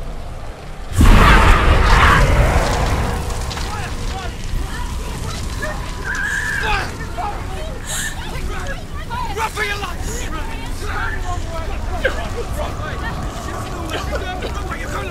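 Flames crackle and roar all around.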